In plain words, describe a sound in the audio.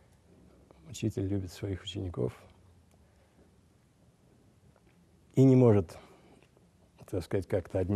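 An elderly man speaks calmly into a microphone, with pauses.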